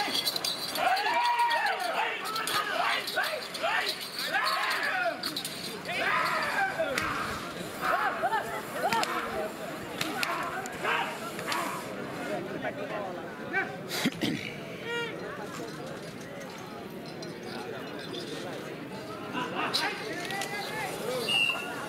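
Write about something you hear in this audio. Men shout loudly at bulls close by.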